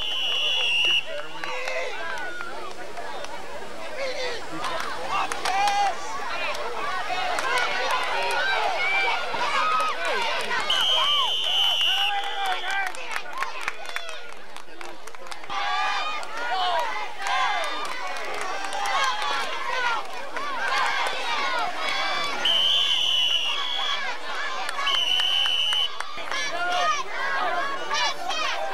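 Many young men shout and cheer nearby outdoors.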